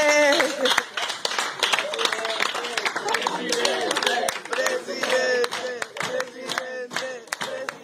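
People clap their hands rapidly.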